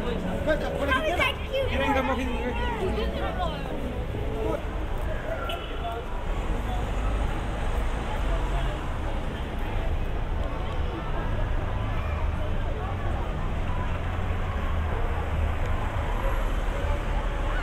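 Traffic rumbles steadily along the street.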